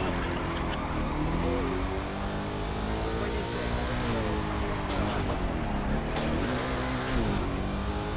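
A racing car engine roars and revs up and down as gears shift.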